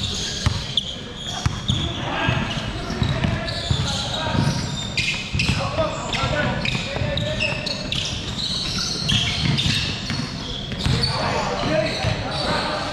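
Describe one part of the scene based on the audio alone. A basketball bounces on a wooden floor in a large echoing hall.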